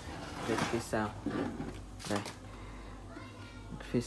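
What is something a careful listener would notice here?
A metal box is picked up off a wooden table with a light clatter.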